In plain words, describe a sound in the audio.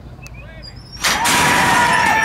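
Starting gates clang open with a loud bang.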